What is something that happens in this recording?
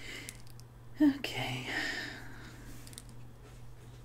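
A woman talks casually close to a microphone.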